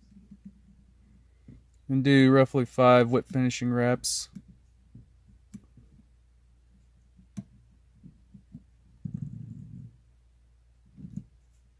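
A small wire tool clicks and taps softly against a hook.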